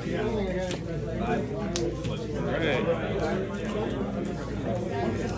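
Playing cards tap and slide softly on a mat.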